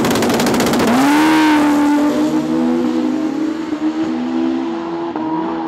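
An inline-four drag racing motorcycle launches at full throttle and roars away into the distance.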